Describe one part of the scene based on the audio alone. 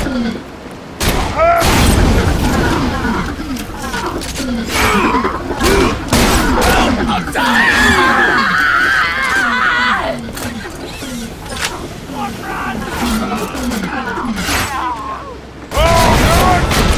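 Explosions burst.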